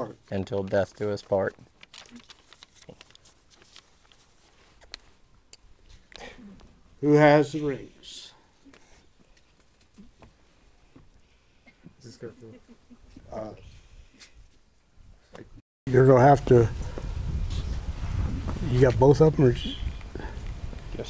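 A man speaks calmly nearby, in short phrases.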